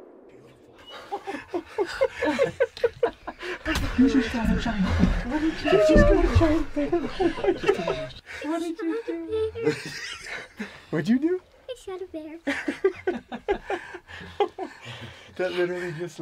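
A man talks and laughs with animation close by.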